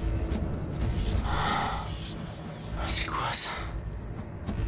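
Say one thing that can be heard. A young man groans and speaks in a strained voice.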